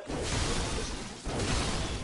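A heavy weapon swings and strikes with a dull thud.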